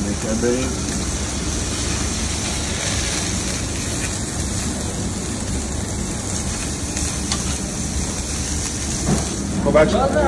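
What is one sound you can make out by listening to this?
Meat sizzles loudly on a hot grill.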